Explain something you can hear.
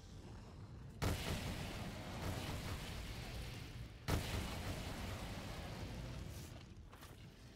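Loud blasts and roaring bursts of game weapon fire sound close up.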